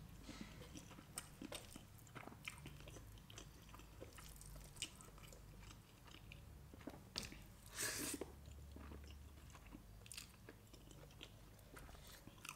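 Food squishes and plastic rustles as fingers dig into a tray.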